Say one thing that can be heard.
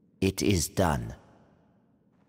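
An elderly man speaks in a low, calm voice close by.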